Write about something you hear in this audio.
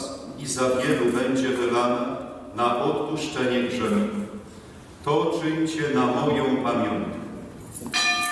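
An elderly man chants through a microphone in an echoing room.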